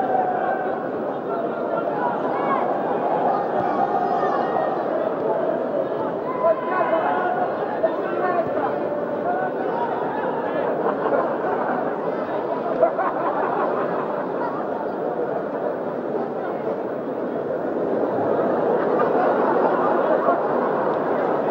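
A stadium crowd roars and murmurs steadily, swelling near the end.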